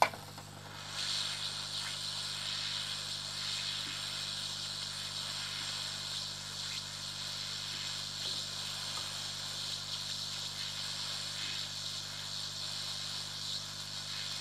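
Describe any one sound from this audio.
Solder hisses and sizzles softly under a hot soldering iron.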